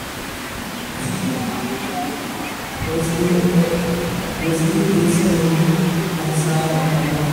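A young man speaks slowly into a microphone.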